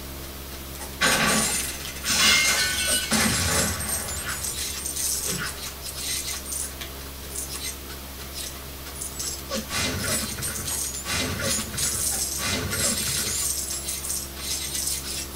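Explosions and clatter burst from a video game on a television loudspeaker.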